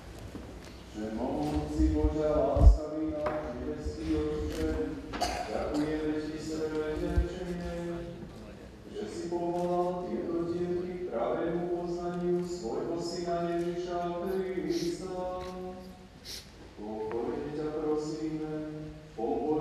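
A crowd of voices sings together in a large echoing hall.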